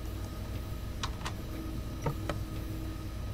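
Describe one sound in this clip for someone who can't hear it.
A windscreen wiper sweeps across the glass with soft thumps.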